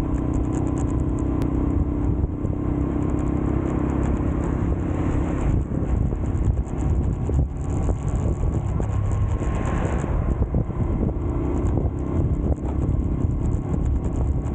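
A scooter engine hums steadily while riding.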